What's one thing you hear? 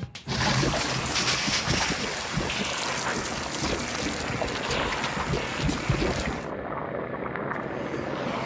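Thick slime sprays out with a loud gushing rush.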